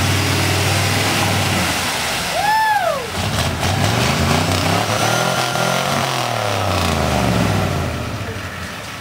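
A truck engine roars and revs loudly.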